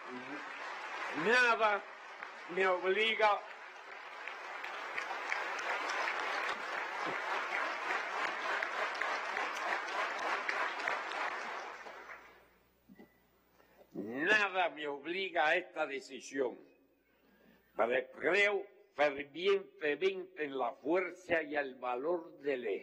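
An elderly man speaks slowly into a microphone in a large hall.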